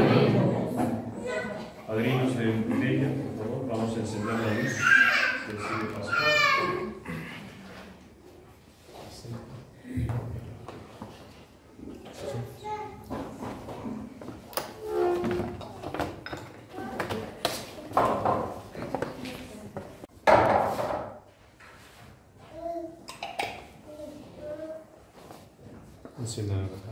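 A crowd of men and women murmurs and talks in an echoing room.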